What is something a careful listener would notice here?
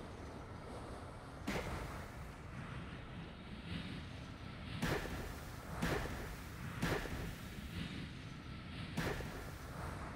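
Thick goo bubbles and splatters.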